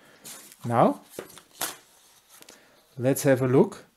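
A sheet of paper rustles as it is slid across a table.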